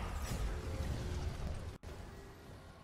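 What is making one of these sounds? A hovering vehicle hums and whooshes loudly.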